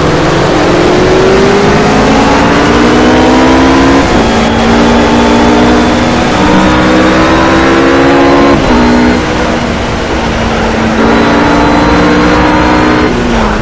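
A GT3 racing car engine revs hard and shifts up through the gears.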